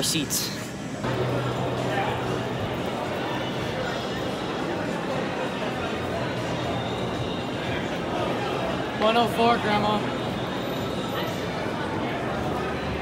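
A crowd murmurs in the background of a large hall.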